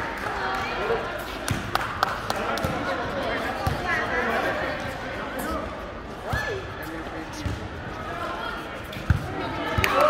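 Young men shout and call out during play in a large echoing hall.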